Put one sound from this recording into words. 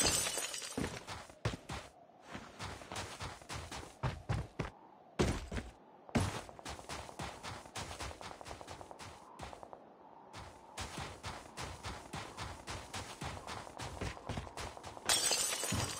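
Quick footsteps crunch through snow.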